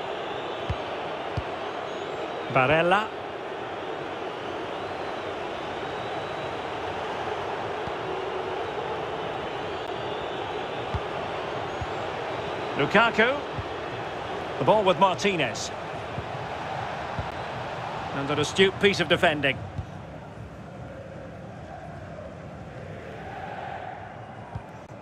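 A stadium crowd roars steadily, then quietens.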